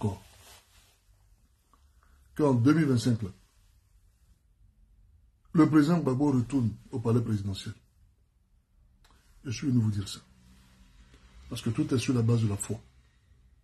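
A man speaks calmly and close to the microphone, in short bursts with pauses.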